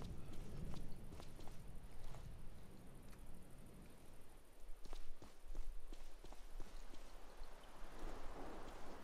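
Footsteps thud on hard ground at a walking pace.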